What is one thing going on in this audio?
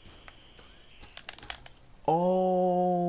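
A glassy figure shatters with a sharp crunch.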